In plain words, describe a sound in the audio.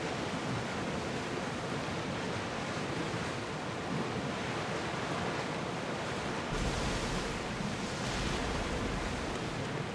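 Waves splash and rush against a ship's hull.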